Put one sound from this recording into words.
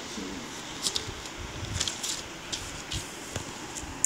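Notebook paper rustles as a page is turned.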